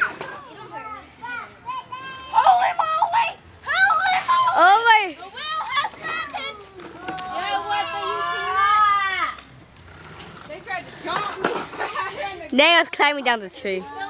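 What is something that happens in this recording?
A woman talks loudly and laughs.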